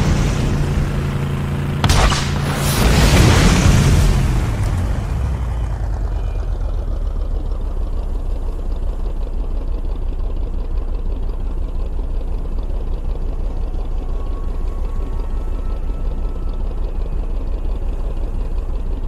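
A vehicle engine idles with a low steady rumble.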